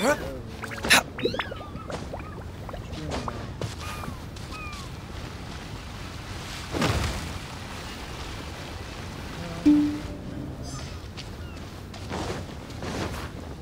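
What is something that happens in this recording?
Footsteps patter quickly over grass and rock.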